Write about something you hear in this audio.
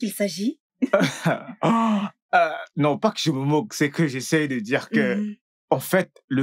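A man speaks emotionally, close by.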